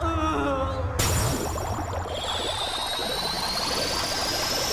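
A magical burst of energy whooshes and rings with a rising shimmer.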